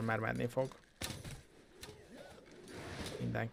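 Sword slashes and spell effects whoosh in a video game.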